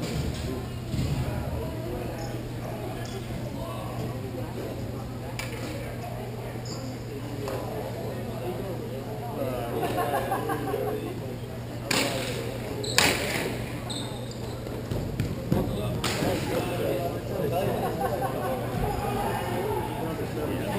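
Skate wheels roll and scrape on a hard floor in a large echoing hall.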